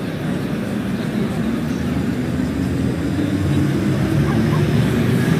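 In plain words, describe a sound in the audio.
A train's motor whines, rising in pitch as the train pulls away.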